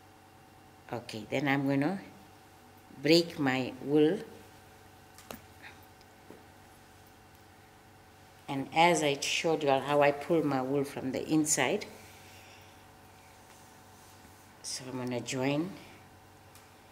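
An older woman speaks calmly nearby, in short phrases.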